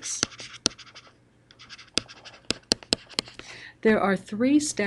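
A pen scratches and taps briskly while writing.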